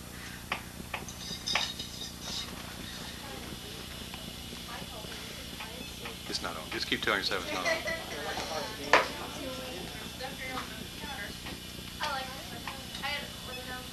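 People talk in a room in the background.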